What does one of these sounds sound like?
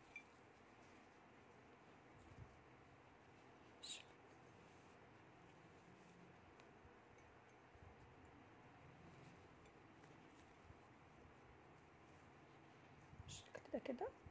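Yarn rustles softly as it is pulled through a knitted cover.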